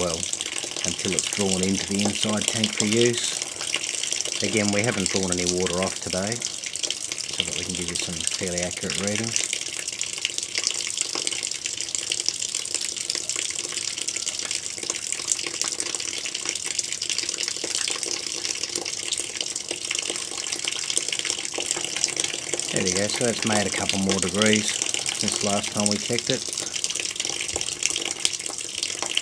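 Water splashes and trickles steadily from a pipe.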